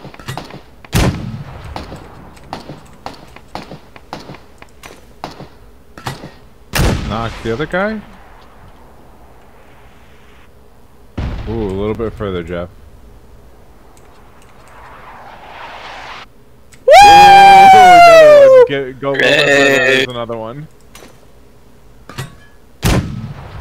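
A rifle fires loud single shots.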